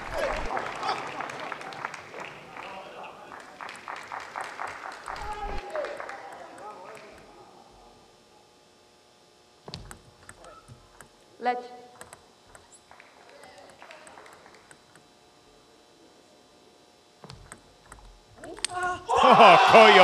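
A table tennis ball clicks back and forth on paddles and the table.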